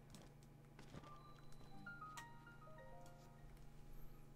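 Game chimes play a short rising jingle.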